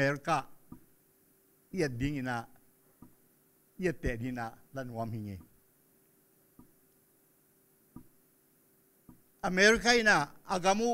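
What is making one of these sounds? An elderly man speaks into a microphone in bursts, with long pauses, heard through a loudspeaker.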